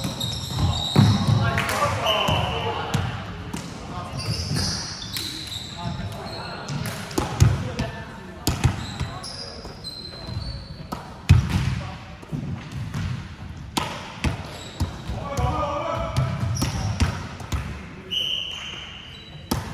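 A volleyball is struck with sharp slaps that echo around a large hall.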